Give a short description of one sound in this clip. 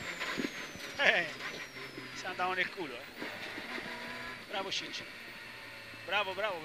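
Tyres squeal in short bursts through the corners.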